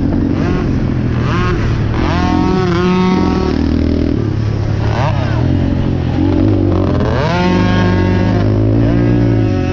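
Another quad bike engine buzzes just ahead.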